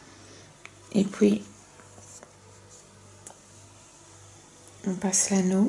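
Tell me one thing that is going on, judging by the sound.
Soft yarn rustles faintly as hands handle it.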